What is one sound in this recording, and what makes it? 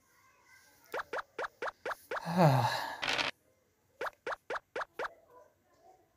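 Game pieces tick in quick steps as they hop across a board.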